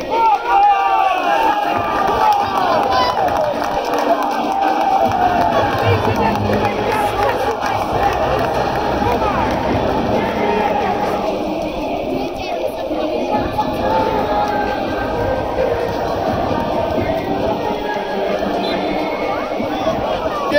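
Children nearby call out in high, excited voices.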